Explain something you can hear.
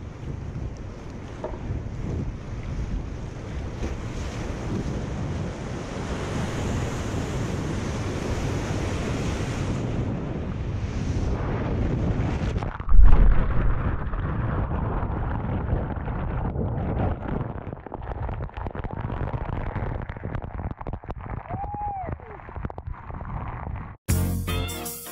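Rapids roar loudly close by.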